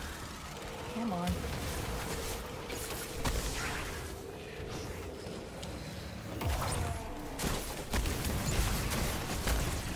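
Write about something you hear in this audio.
Gunshots and blasts boom repeatedly.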